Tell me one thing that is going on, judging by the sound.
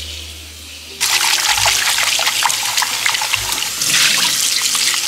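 Tap water runs and splashes into a metal sink.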